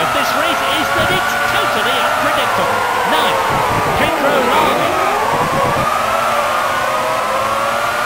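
Other racing car engines whoosh past, rising and falling in pitch.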